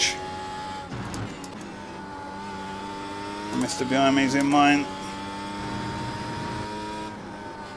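A racing car engine hums steadily and shifts pitch as it changes gear.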